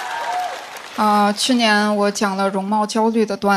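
A young woman speaks into a microphone with lively energy.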